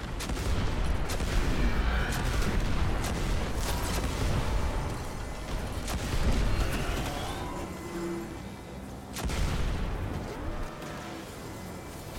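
Gunshots crack rapidly.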